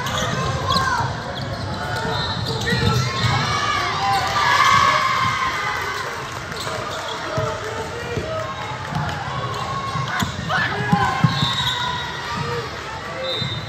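Spectators shout and cheer in a large echoing gym.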